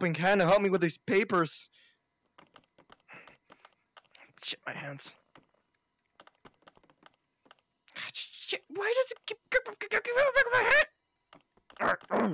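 Buttons click as they are pressed.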